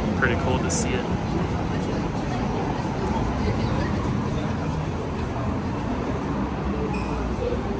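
A crowd of people murmurs in the background indoors.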